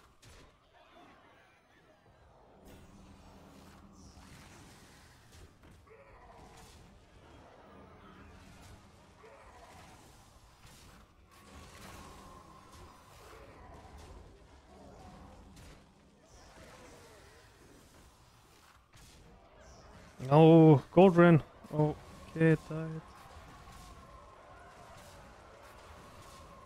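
Game sound effects of magical blasts and impacts play.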